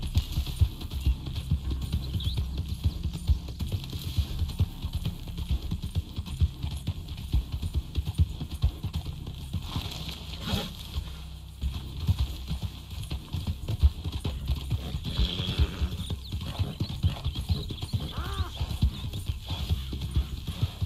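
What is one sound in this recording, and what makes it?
Horse hooves thud quickly and steadily at a gallop over grass.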